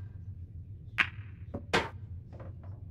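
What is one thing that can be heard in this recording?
Pool balls knock together.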